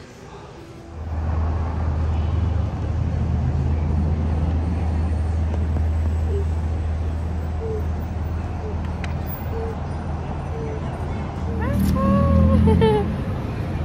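Traffic hums steadily along a city street at night.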